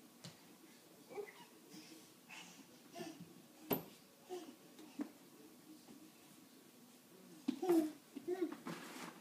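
A small baby babbles and squeals nearby.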